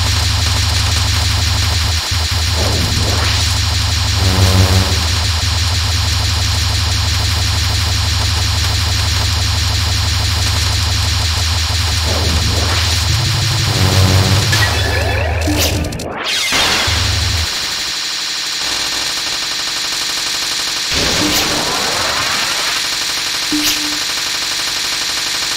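Fast electronic shots patter on and on.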